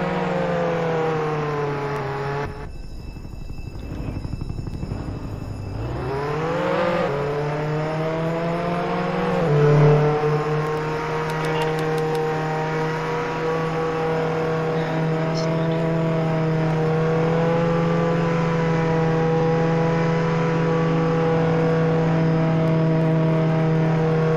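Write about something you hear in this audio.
A car engine hums steadily and revs up as the car speeds along.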